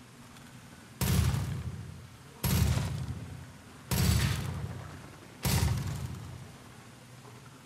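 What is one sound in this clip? A rifle fires several shots, each with a booming echo.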